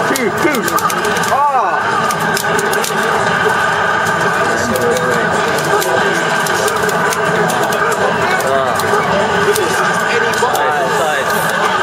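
Punches and kicks from a video game fight land with sharp, rapid thuds.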